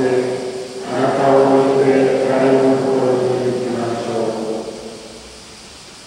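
An elderly man chants into a microphone in a large echoing hall.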